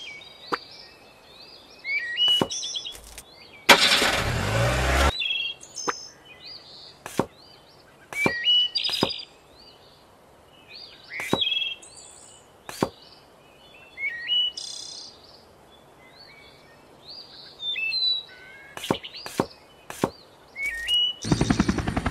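Short electronic blips and chimes sound again and again.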